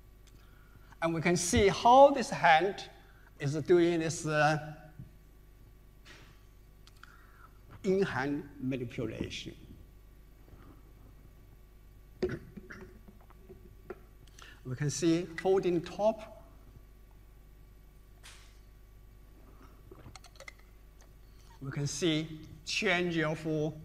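A man speaks calmly through a microphone, with pauses between phrases.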